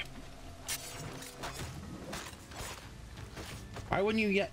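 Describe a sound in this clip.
Swords clash and strike in a game fight.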